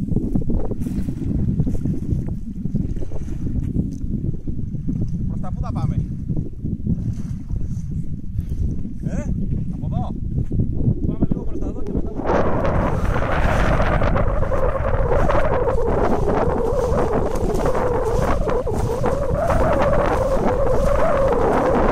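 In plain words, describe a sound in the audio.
Wind blows hard across the open water.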